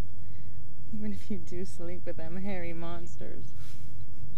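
A young woman speaks softly and briefly up close.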